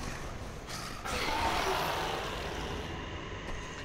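A loud rush of air and debris sweeps past.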